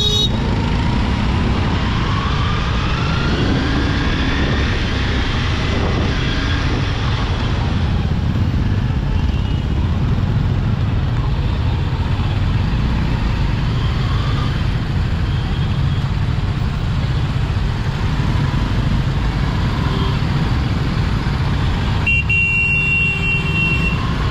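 Wind rumbles loudly past a moving motorcycle.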